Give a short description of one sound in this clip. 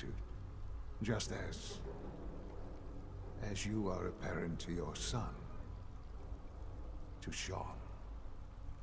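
A middle-aged man speaks calmly in a low voice.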